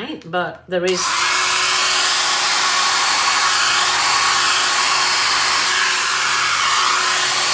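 A heat gun blows with a steady, loud whooshing hiss.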